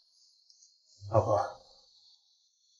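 A young man speaks gently up close.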